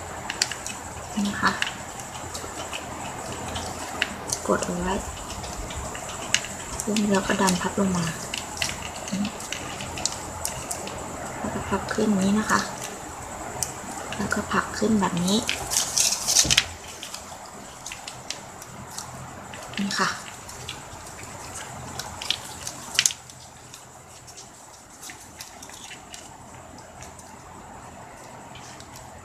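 Plastic ribbon crinkles and rustles as hands fold and weave it.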